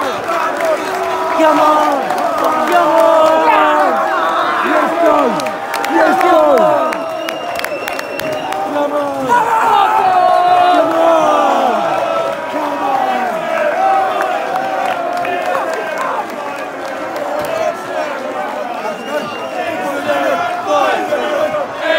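A large stadium crowd sings and chants loudly close by.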